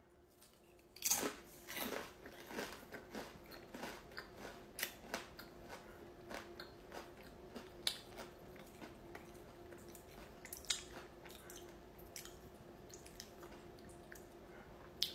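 A crunchy snack crunches loudly as someone chews close by.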